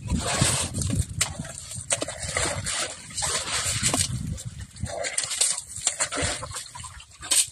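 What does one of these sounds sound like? An elephant scuffs and kicks loose dirt with its foot.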